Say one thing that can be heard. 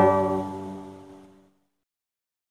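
A strummed guitar chord rings out and fades away.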